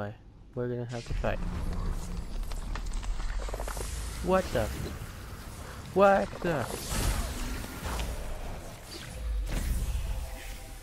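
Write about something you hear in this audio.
Magic blasts whoosh and crackle during a fight.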